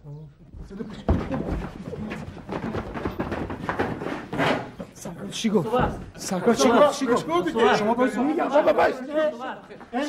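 Several men shout and laugh together.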